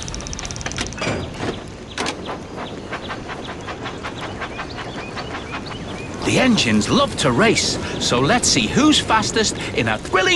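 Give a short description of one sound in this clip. A toy steam train chugs along its tracks.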